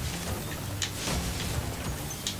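Fire roars in a short whooshing burst.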